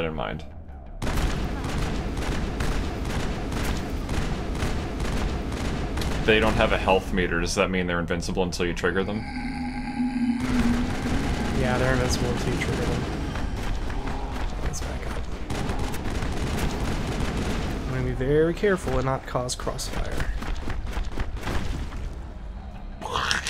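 Rapid gunfire crackles and bursts in quick volleys.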